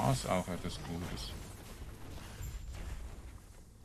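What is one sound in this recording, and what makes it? Spells and blows crackle and burst in a game fight.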